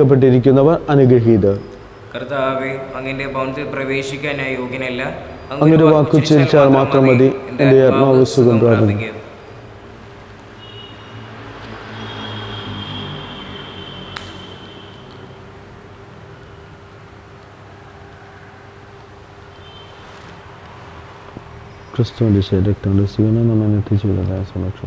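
A man chants and prays aloud through a microphone in an echoing hall.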